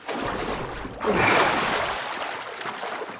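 A body splashes into water.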